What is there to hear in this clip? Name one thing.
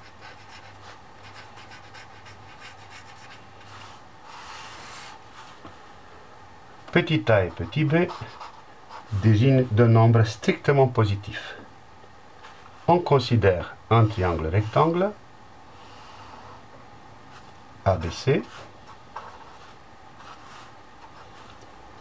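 A felt-tip marker squeaks and scratches softly on paper.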